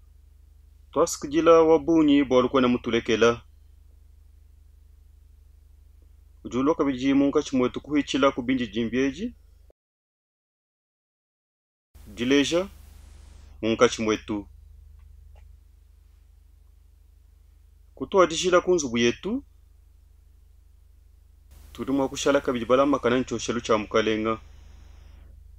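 A man speaks calmly and slowly into a close microphone, in short phrases with pauses.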